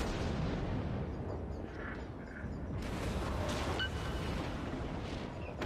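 A low rumble runs throughout.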